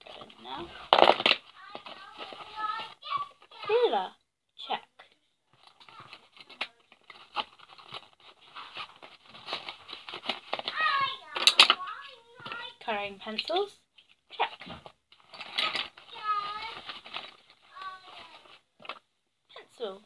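Pens and pencils rattle in a pencil case.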